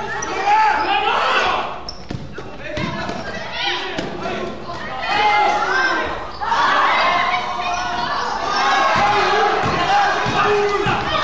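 Young players shout to each other across the court.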